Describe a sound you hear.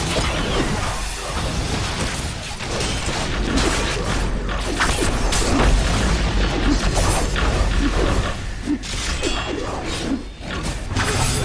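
Magic spells crackle and burst in a game battle.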